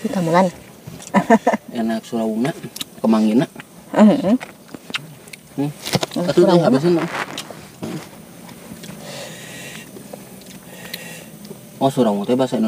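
A young woman talks calmly up close.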